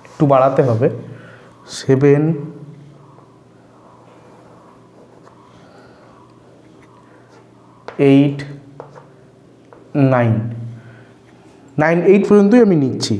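A man speaks in short bursts, close to a microphone, as if explaining.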